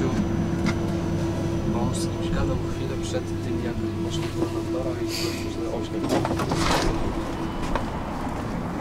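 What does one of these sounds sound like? A tram's motor hums steadily while it stands at a stop.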